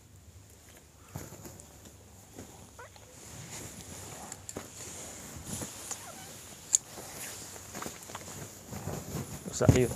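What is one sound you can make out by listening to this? Fabric rustles as cloth is handled and shaken out.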